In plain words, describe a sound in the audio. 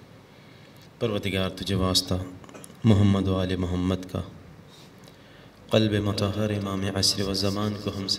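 A man chants emotionally into a microphone in bursts.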